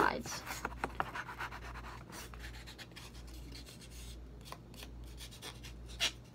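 A nail file rasps against a fingernail.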